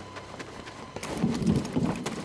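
Footsteps thud quickly on a metal ramp.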